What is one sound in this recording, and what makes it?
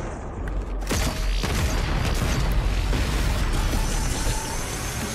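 A weapon fires a crackling electric beam.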